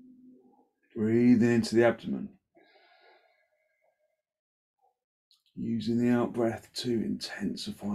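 A man speaks loudly and calmly nearby.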